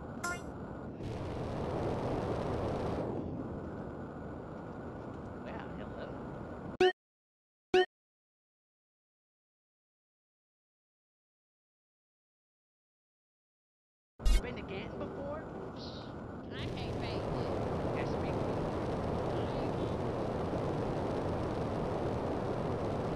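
A jetpack roars with a rushing thrust.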